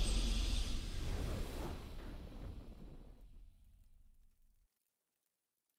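A deep booming victory fanfare swells and slowly fades away.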